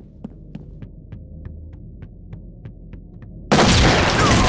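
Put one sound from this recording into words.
Footsteps tap evenly on a hard floor.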